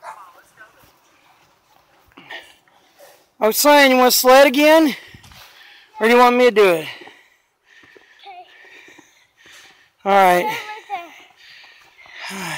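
Boots crunch through snow.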